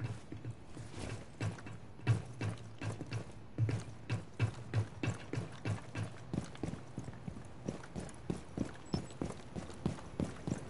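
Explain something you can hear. Footsteps run quickly and steadily on hard ground.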